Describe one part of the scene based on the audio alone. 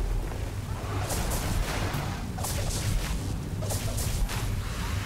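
Electric zaps and hits crackle in quick bursts.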